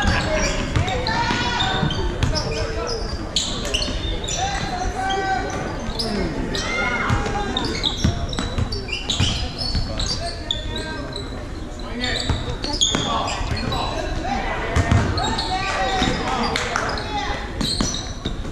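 Young male players call out and shout to each other across the gym.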